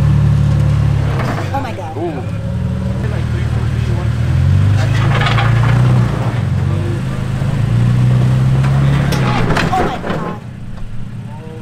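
A truck engine revs and strains as it crawls over rocks.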